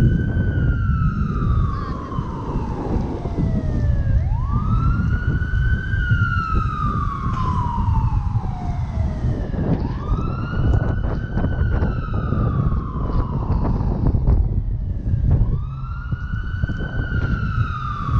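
Car engines idle and pass close by in traffic.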